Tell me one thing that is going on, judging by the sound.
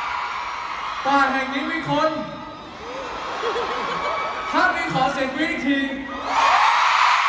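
A young man sings into a microphone, heard through loudspeakers.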